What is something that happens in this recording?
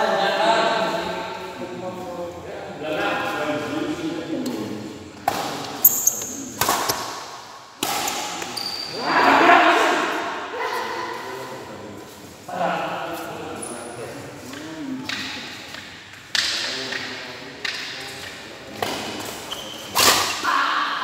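Men call out during play in a large echoing hall.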